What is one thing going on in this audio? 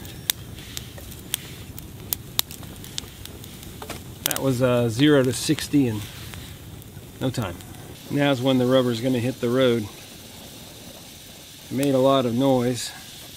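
A campfire crackles and pops close by.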